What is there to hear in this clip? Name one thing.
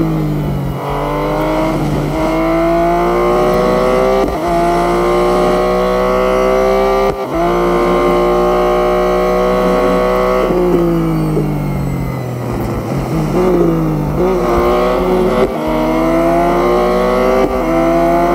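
A race car engine roars, rising in pitch through each gear and dropping sharply at each gear change.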